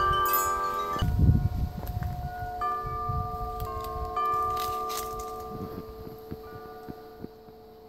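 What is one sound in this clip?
Wind chimes with deep, low tones ring slowly and fade.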